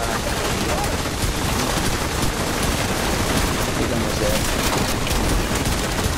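Rapid gunfire rattles and cracks.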